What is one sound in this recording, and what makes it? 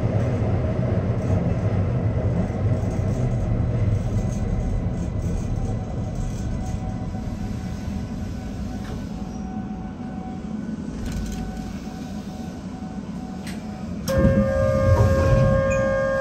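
A train rumbles steadily along rails through a tunnel.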